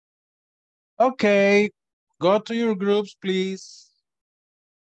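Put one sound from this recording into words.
A man speaks briefly and with animation over an online call.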